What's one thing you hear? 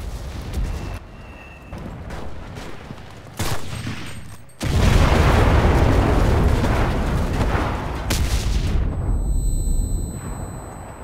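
Loud explosions boom and rumble close by.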